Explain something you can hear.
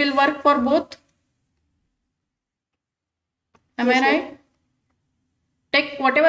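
A woman speaks calmly and clearly into a close microphone, in short phrases with pauses.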